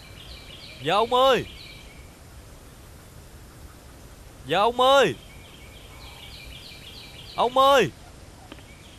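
A young man calls out loudly several times.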